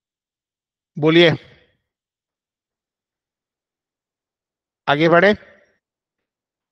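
A man speaks briefly and calmly through a microphone in an online call.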